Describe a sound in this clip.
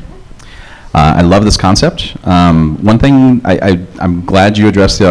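A man speaks through a microphone in a large room.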